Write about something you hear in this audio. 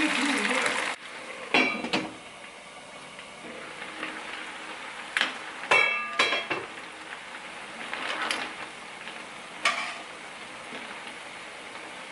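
Water bubbles and simmers in a pan.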